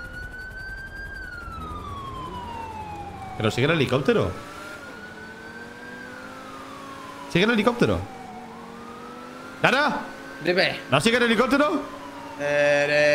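A sports car engine revs and hums steadily, rising and falling in pitch.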